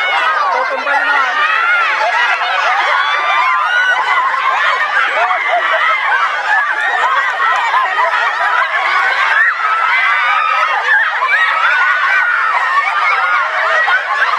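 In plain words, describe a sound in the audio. Young women laugh loudly.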